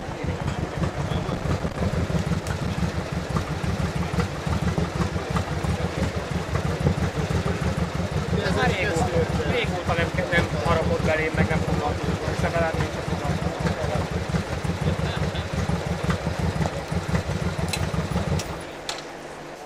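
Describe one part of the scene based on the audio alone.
Motorcycle engines rumble and idle close by.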